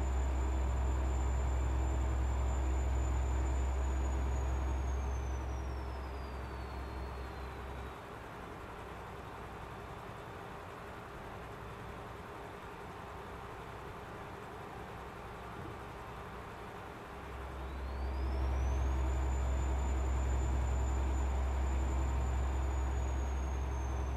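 A truck engine drones low and steady, quietens for a while, then swells again.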